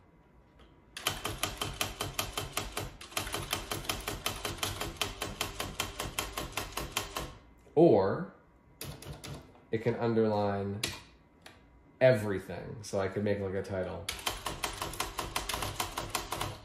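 Keys on an electronic typewriter clatter in quick, even bursts.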